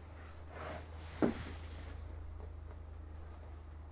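Bedding rustles as a person sits down on a bed.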